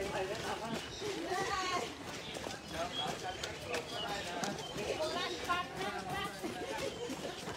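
A crowd of runners chatter and call out nearby, outdoors.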